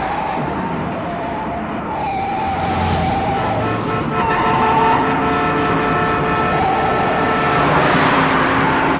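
A car engine roars as the car speeds along a street.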